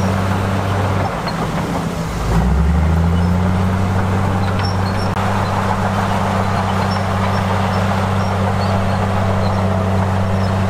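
Bulldozer diesel engines rumble steadily, changing pitch as they work.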